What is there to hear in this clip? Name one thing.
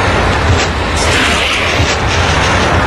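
A rope swishes through the air in a quick swing.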